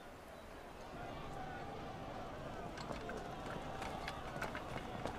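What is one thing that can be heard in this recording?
A crowd murmurs at a distance.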